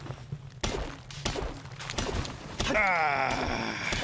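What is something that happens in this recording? A pickaxe strikes rock with sharp knocks.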